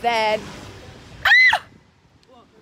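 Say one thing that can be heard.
A young woman gasps loudly.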